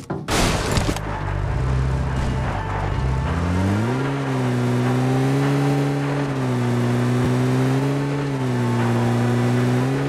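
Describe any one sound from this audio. A jeep engine roars and revs as it drives.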